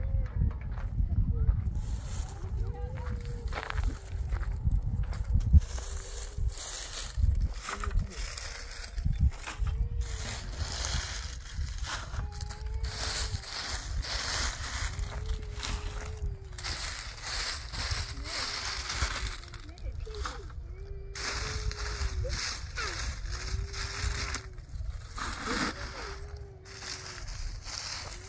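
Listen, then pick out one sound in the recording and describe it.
Stones clatter and scrape as they are moved by hand.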